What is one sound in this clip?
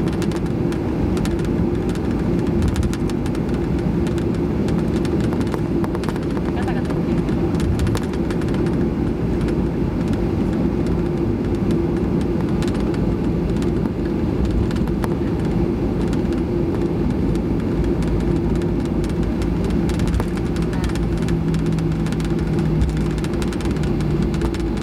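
A plane's wheels rumble and thump over the ground.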